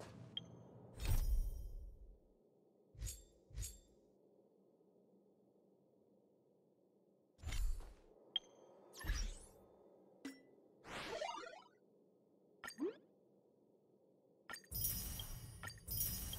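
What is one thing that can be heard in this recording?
Short game menu clicks and whooshes sound as menus open and close.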